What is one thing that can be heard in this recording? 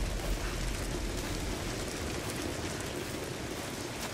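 Footsteps crunch softly on leaves and earth.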